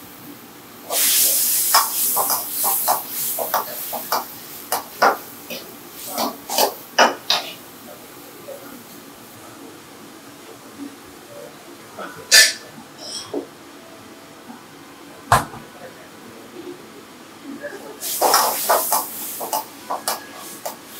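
Food sizzles loudly in a hot wok.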